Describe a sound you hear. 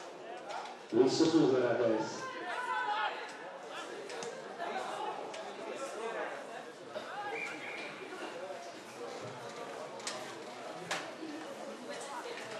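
A man talks and shouts loudly close by, outdoors.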